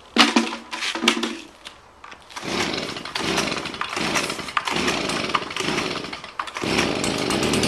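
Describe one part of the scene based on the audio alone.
A pull cord rattles sharply several times as a petrol engine is cranked.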